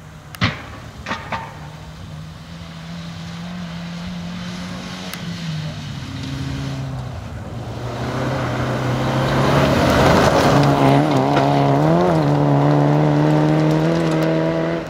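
Gravel crunches and sprays under tyres.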